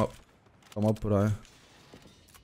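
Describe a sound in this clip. A young man speaks loudly and briefly into a microphone.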